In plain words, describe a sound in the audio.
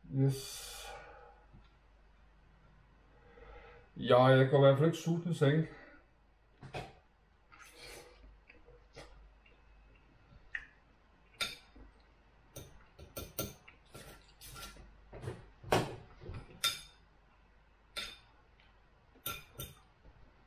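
A fork and knife clink and scrape on a plate.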